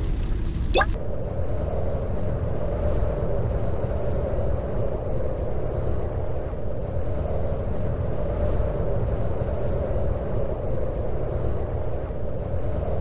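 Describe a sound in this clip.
Wind rushes past a hang glider.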